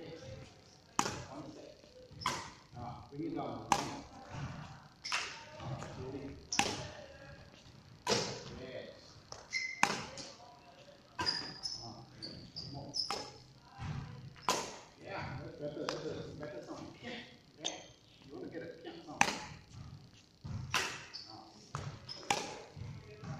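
Rackets strike a shuttlecock back and forth with sharp pops in a large echoing hall.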